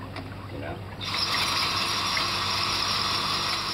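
A power drill whirs loudly and steadily.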